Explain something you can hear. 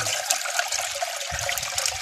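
Muddy water pours from a metal basin into a bucket.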